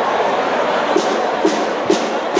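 A bass drum thumps a few times.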